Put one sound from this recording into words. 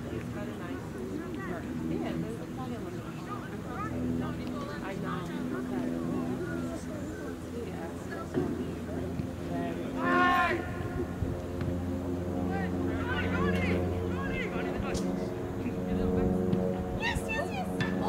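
Spectators nearby chat and talk outdoors, men and women mixed.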